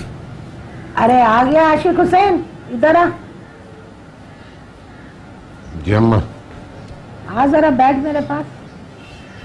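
An elderly woman speaks earnestly nearby.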